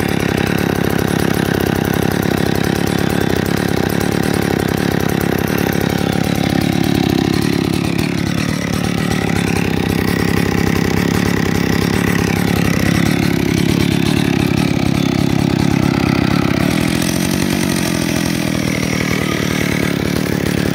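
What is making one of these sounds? A chainsaw engine idles loudly and steadily close by, with its pitch rising and falling a little.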